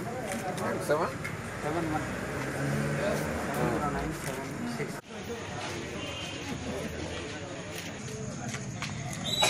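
Several men talk nearby.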